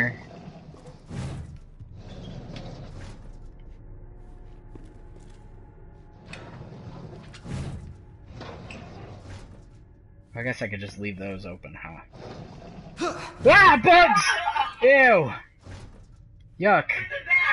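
A metal drawer slides open with a scraping rattle.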